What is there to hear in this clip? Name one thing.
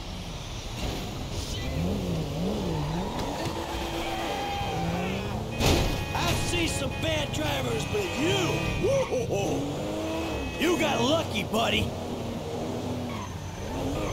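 A sports car engine revs and roars as the car speeds along a road.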